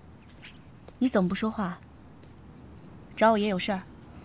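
A young woman asks questions calmly, close by.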